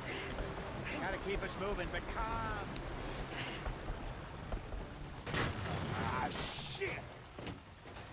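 A wagon's wheels rumble and creak over rough ground.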